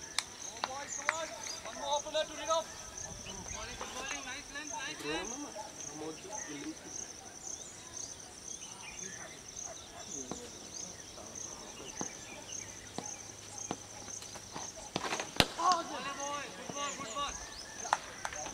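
Men call out across an open field at a distance.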